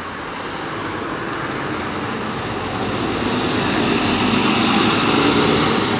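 A bus engine rumbles and grows louder as the bus pulls away.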